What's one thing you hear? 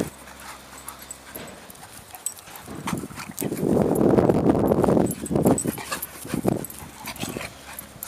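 Dogs' paws patter and thud on grass as they chase each other.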